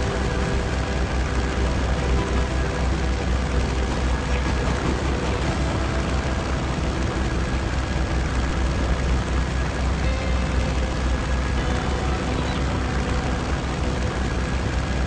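A propeller plane's engines drone steadily.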